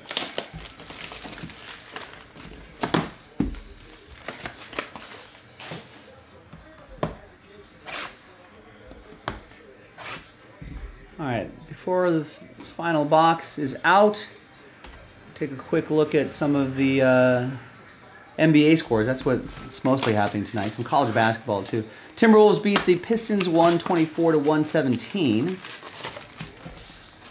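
Cardboard boxes knock and slide on a table.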